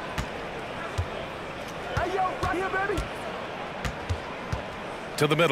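A basketball bounces with sharp thuds on a hardwood court.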